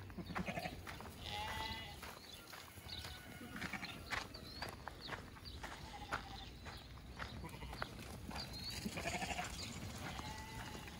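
A flock of sheep bleat and baa close by.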